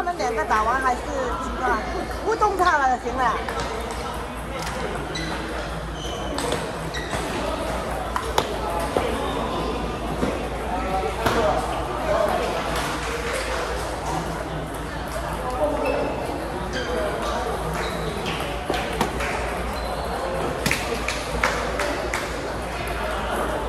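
Table tennis balls click off paddles and tables in rapid rallies.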